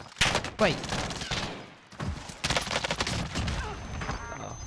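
Gunshots bang in quick bursts.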